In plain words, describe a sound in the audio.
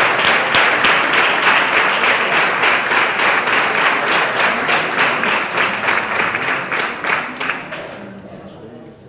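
An audience applauds in rhythmic clapping.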